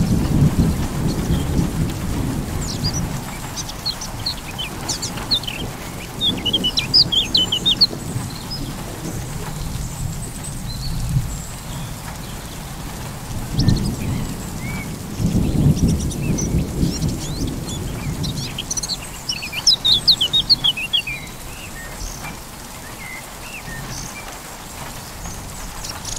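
Waves wash onto a rocky shore in slow surges.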